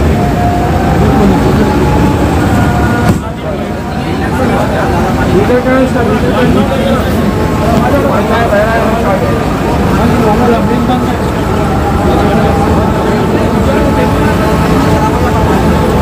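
A crowd of men talk and shout over one another close by.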